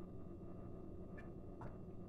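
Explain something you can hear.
A man gulps a drink close by.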